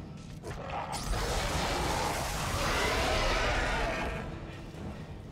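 An energy blast crackles and roars.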